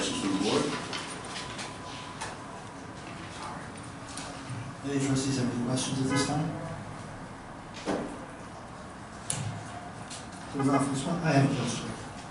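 A man speaks through a microphone in a large room, in bursts with pauses.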